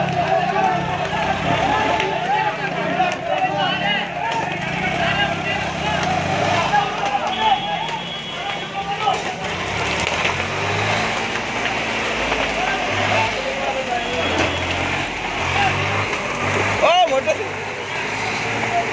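A large fire roars and crackles.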